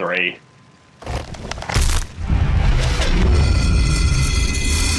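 A deep, booming rumble swells as a hand wrenches a spiked relic free.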